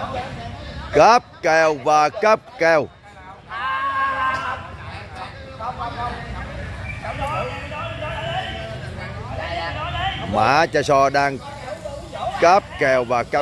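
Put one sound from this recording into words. A man close by talks loudly with animation.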